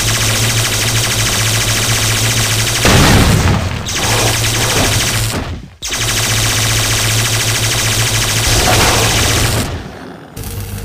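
An electric weapon crackles and buzzes.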